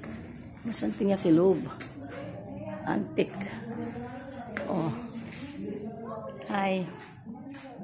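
An older woman speaks calmly, close to the microphone.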